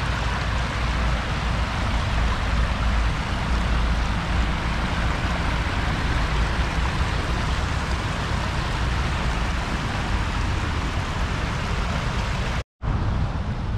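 Water rushes over a small weir.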